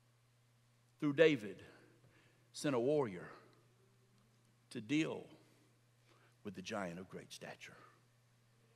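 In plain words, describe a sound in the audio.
A middle-aged man speaks expressively into a microphone in a large hall, with short pauses between phrases.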